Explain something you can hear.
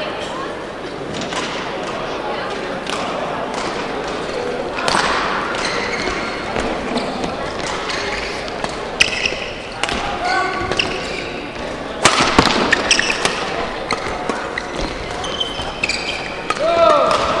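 A shuttlecock is struck sharply with a racket, back and forth.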